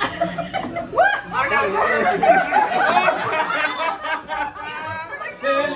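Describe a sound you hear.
A group of men and women sing loudly together nearby.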